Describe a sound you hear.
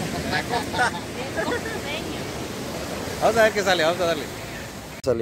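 A boy speaks close by.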